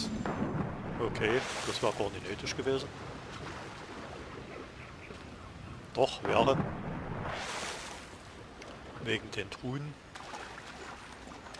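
Water splashes as a swimmer moves through it.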